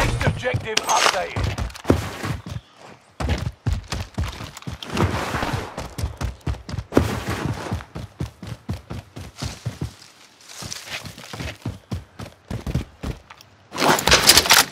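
Footsteps thud quickly over dirt and rock.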